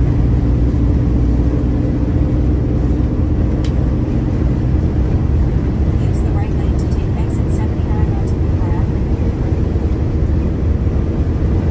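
Tyres roar on the highway.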